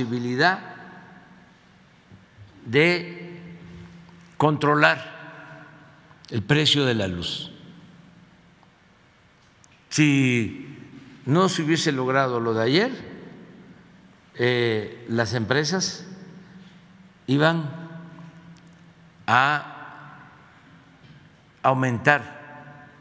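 An elderly man speaks emphatically into a microphone, in short bursts with pauses, in a room with some echo.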